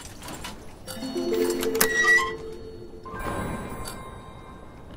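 A heavy metal panel grinds open.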